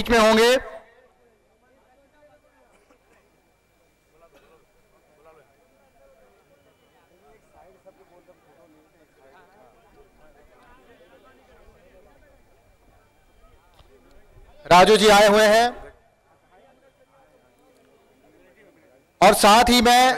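A crowd murmurs softly in the background.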